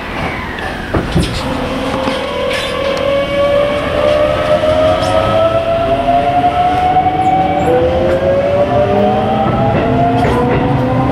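An electric train motor whines, rising in pitch as the train pulls away.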